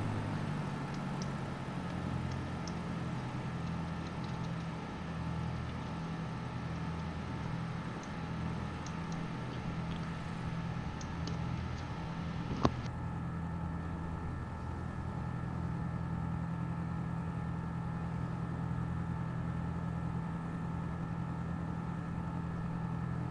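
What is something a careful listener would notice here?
Twin propeller engines drone steadily.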